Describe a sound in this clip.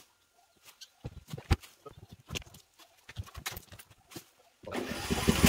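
Footsteps thud on a wooden deck close by.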